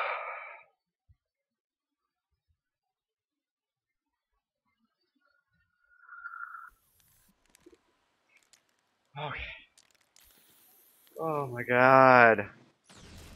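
A young man speaks into a close microphone in short bursts, with long pauses.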